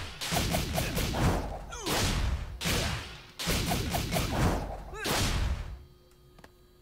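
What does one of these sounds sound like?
Loud whooshing and crackling strikes sound in quick bursts.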